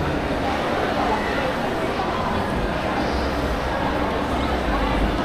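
Many distant voices murmur and echo through a large hall.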